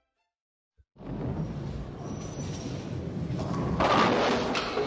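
A bowling ball rolls down a lane with a low rumble.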